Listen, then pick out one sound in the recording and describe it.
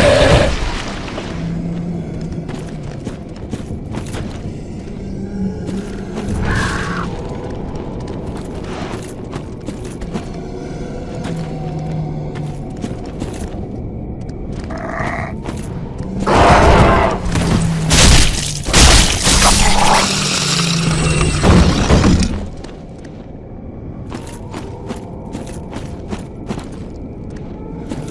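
Armoured footsteps clink and crunch over leaves.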